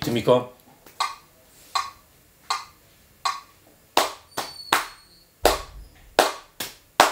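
Hands tap out a steady rhythm on a drum.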